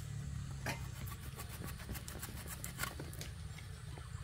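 A blade chops through a green banana stalk.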